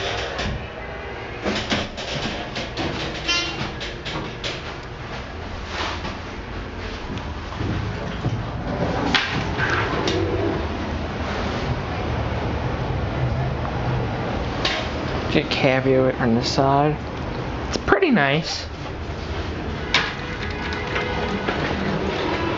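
An elevator car hums steadily as it moves.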